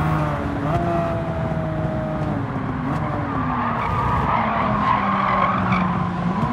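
A race car engine roars steadily, shifting gears as it accelerates.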